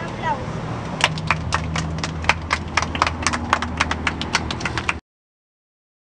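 Children clap their hands in rhythm.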